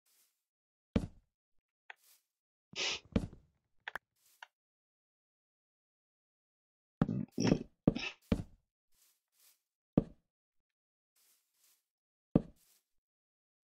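Wooden blocks thud as they are set down, one at a time.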